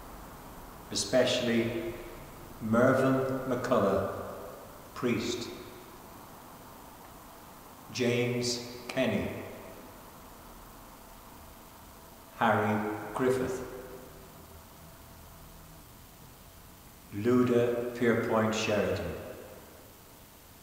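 An elderly man speaks slowly and solemnly, with long pauses, in a room with a slight echo.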